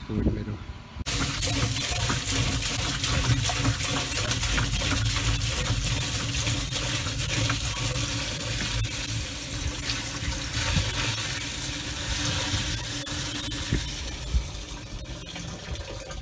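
Water pours from a jug and splashes into a barrel, then slows and stops.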